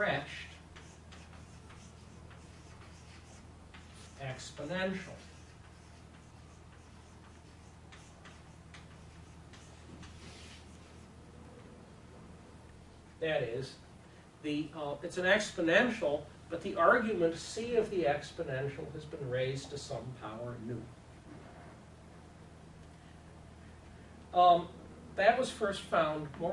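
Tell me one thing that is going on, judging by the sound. An elderly man speaks calmly, lecturing.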